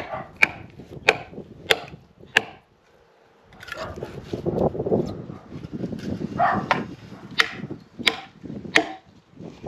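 A hammer strikes a metal wedge into a log with sharp, ringing blows.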